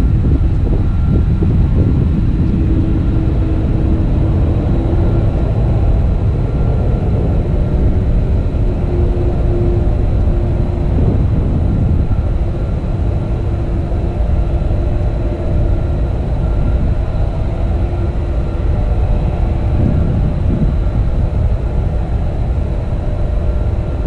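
A jet airliner's engines roar steadily in the distance.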